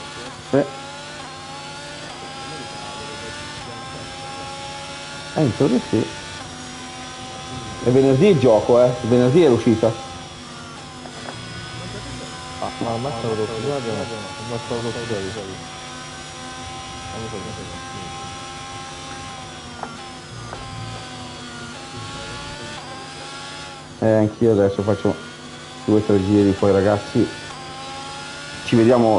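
A racing car engine whines steadily, rising and falling in pitch as the gears change.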